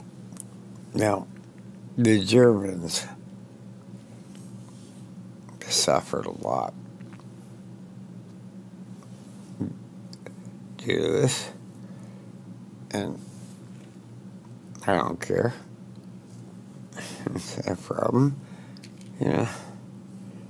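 An elderly man speaks in short bursts close to a microphone.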